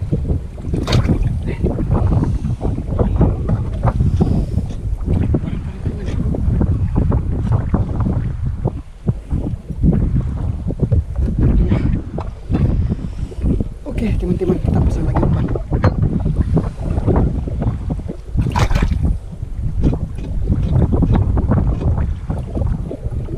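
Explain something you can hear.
A man talks calmly and steadily close by.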